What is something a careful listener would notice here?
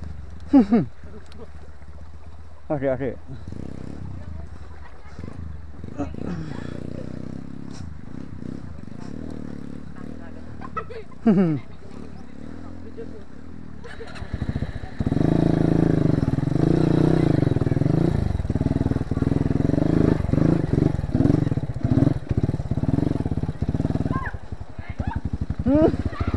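A motorcycle engine idles and revs unevenly, getting louder and rougher partway through.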